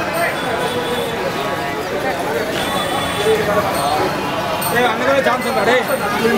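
A crowd of men talk and call out nearby outdoors.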